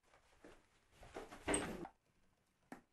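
A door opens with a click.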